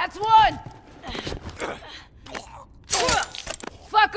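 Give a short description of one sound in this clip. Punches thud in a close scuffle.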